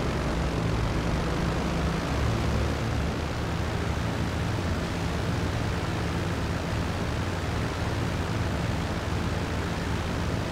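Propeller engines drone steadily as a plane flies.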